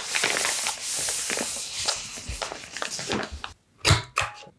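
Thick paper rustles and crinkles as it is handled.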